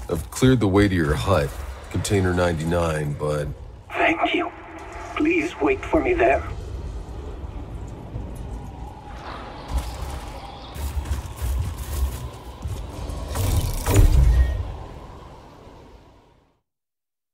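Footsteps tread over grass and gravel.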